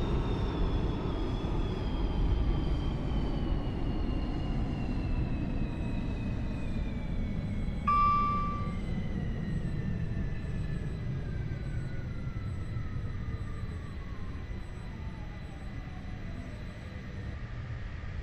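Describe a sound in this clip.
A train rumbles along the rails.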